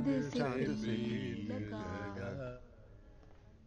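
A piano plays a lively tune.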